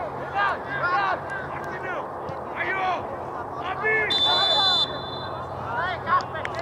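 Young men shout to each other across an open field at a distance.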